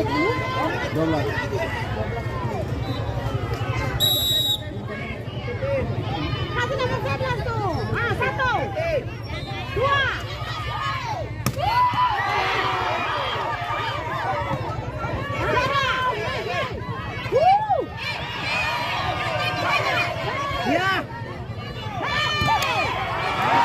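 A large outdoor crowd of men and women chatters and shouts throughout.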